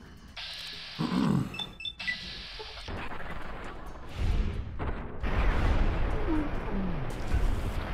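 A large creature snarls and growls.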